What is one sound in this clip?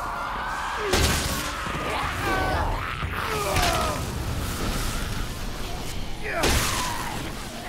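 Heavy blows strike zombies with dull thuds.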